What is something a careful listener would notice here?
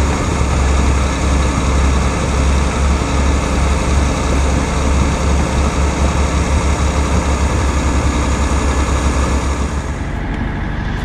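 A truck's diesel engine rumbles loudly nearby with a deep throb.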